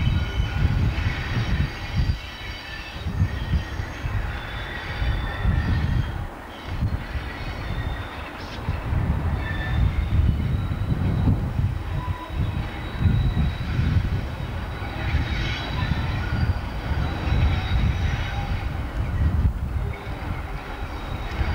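A diesel locomotive rumbles and drones as it approaches slowly.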